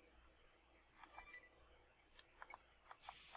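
Short electronic menu blips click several times.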